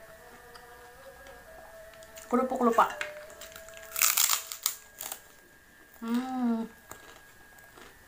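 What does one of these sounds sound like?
A young woman chews and smacks her lips close by.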